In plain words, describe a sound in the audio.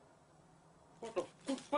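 A small dog yelps twice close by.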